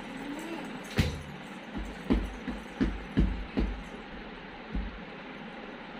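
A toddler pats a mattress with small hands.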